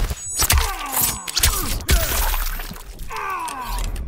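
A blade slices into flesh with a wet squelch.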